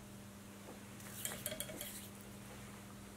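Fingers handle thread and feathers with a faint rustle.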